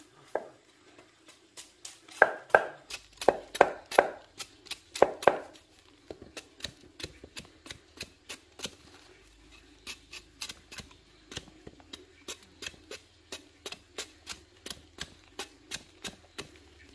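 A knife blade scrapes and chops quickly at the peel of a root.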